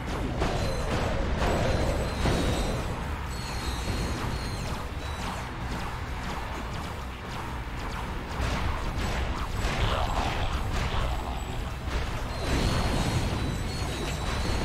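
Explosions boom and crackle repeatedly.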